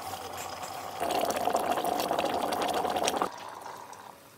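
Water pours into a kettle.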